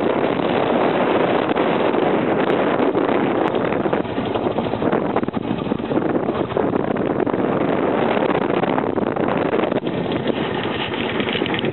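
A motorcycle engine hums steadily while riding along a winding road.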